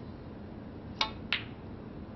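A snooker cue taps the cue ball.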